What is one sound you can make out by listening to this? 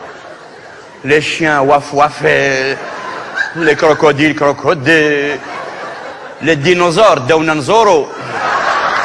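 A middle-aged man sings with animation.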